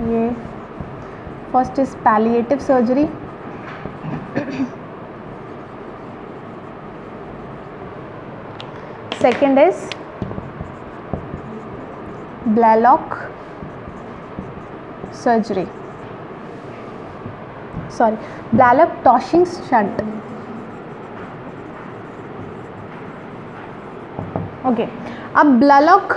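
A young woman speaks in short, calm phrases nearby, with long pauses.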